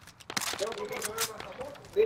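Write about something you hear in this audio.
A rifle clicks and clacks as it is reloaded.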